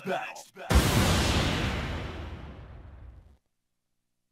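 A heavy booming impact hits and slowly rings out.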